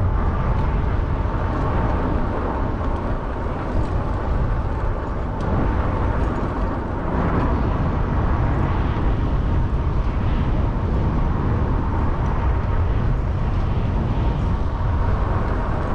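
Tyres roll steadily over pavement.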